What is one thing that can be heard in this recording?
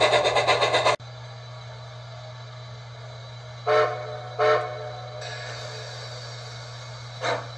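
A model train rumbles quietly along its track.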